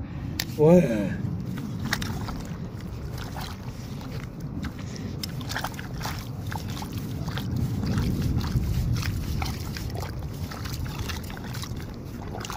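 Hands dig and squelch through wet mud and shallow water.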